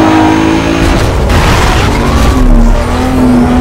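A vehicle crashes with a heavy metallic bang.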